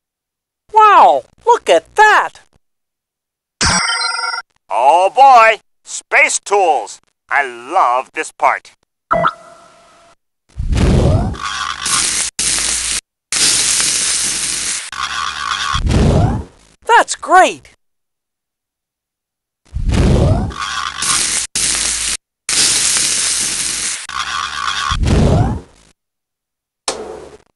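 Playful cartoon sound effects chirp and whoosh in quick bursts.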